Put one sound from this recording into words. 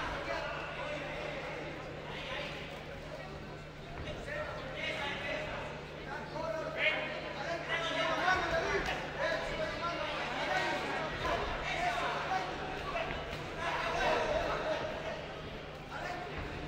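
A crowd of men and women shouts and cheers in a large echoing hall.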